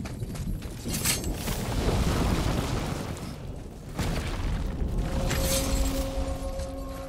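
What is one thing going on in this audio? A heavy stone door grinds and rumbles open.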